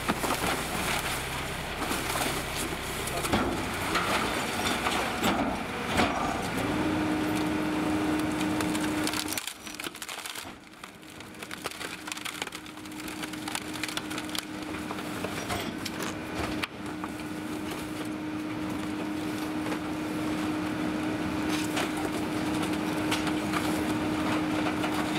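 Cardboard scrapes and thumps as it is tossed into a garbage truck.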